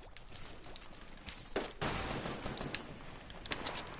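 Wooden building pieces clunk into place.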